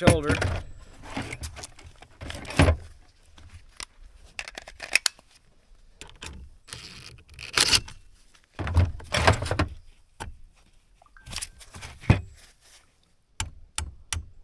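Metal parts clink and knock.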